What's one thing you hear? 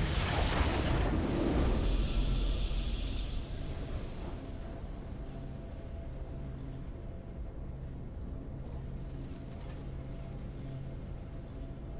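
Triumphant video game victory music plays.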